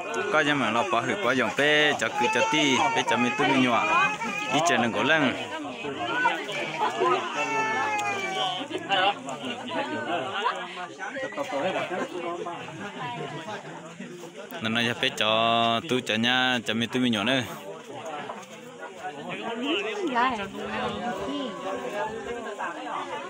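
A crowd of men and women chatter close by, outdoors.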